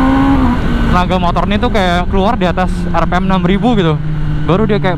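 A motorcycle engine revs sharply up and down again and again.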